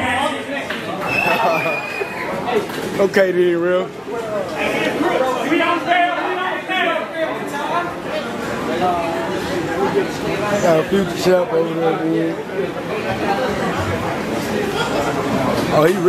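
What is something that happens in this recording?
Several men shout and talk with excitement nearby.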